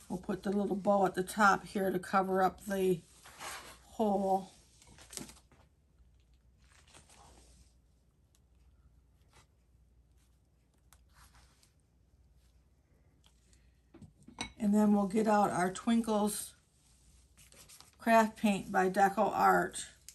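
A woman speaks calmly and close by, in bursts with pauses.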